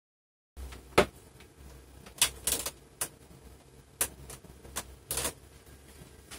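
Hands knock and bump against a computer monitor.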